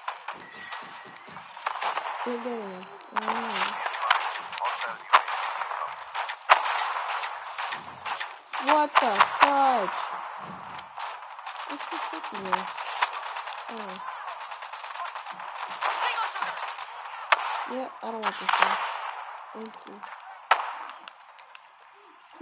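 Video game gunfire cracks in short bursts.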